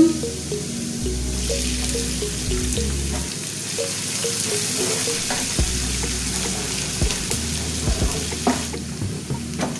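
A sauce bubbles and sizzles in a pan.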